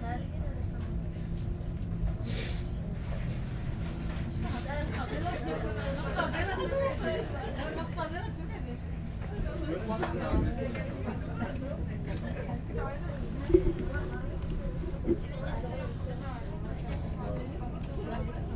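A train hums and rumbles steadily as it rolls along.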